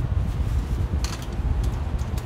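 A piano bench creaks as a man sits down.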